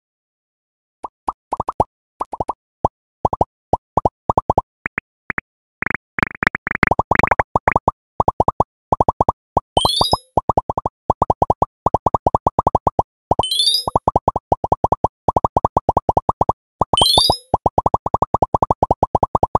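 A tablet game plays quick, bright popping blips in rapid succession.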